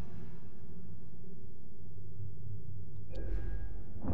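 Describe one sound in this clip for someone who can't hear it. A lightsaber hums and swings.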